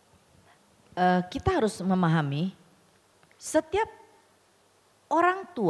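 A woman speaks with animation into a microphone, heard through loudspeakers in an echoing hall.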